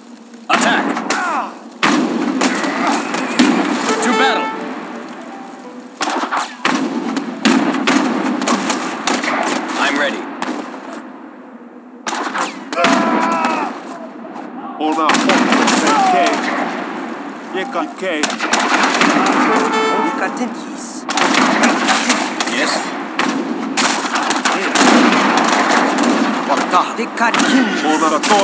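Muskets and cannons fire in a rapid, noisy battle.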